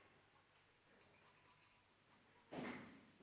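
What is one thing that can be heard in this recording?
Small vessels clink softly on a table.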